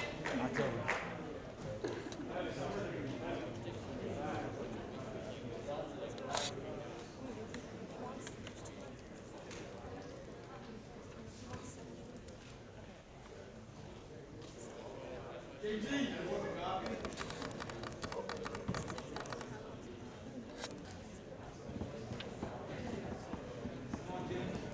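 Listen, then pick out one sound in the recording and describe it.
A crowd of people murmurs and chatters in a large hall.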